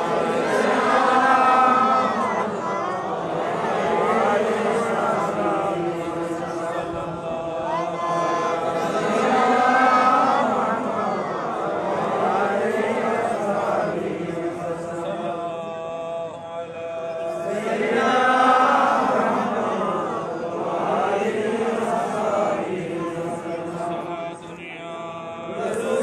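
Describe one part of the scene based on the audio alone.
A crowd of men chant together in unison, loud and close, in a reverberant space.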